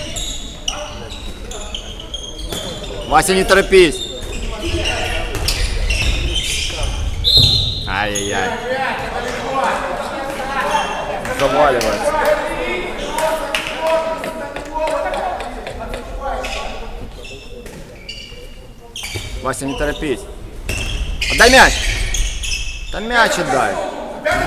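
Players shout to each other across an echoing hall.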